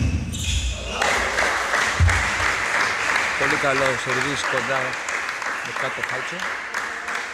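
A crowd applauds loudly in a large echoing hall.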